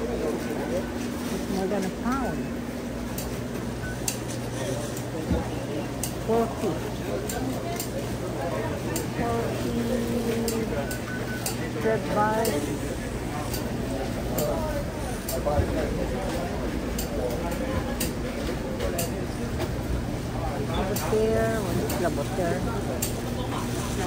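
Men and women murmur and talk in the background.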